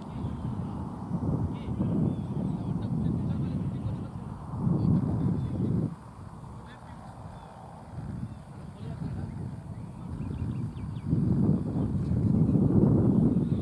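Wind gusts and rumbles across the microphone outdoors.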